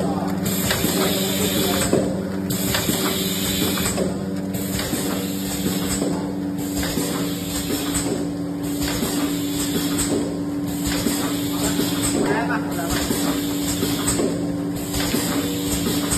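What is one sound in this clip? A packaging machine clatters in a regular rhythm.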